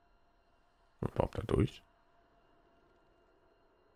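A soft menu click sounds.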